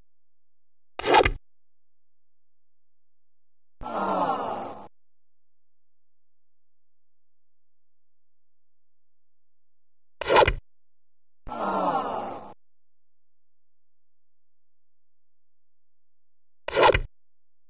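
An arcade golf game plays the sound of a club striking a ball.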